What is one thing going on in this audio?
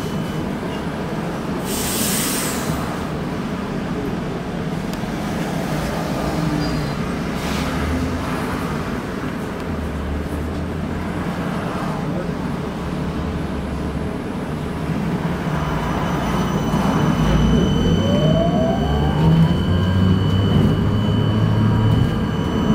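Traffic rumbles along a busy road outside.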